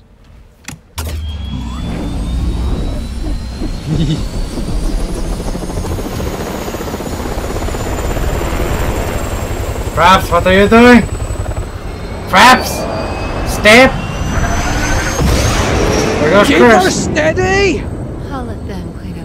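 A helicopter's rotor roars steadily.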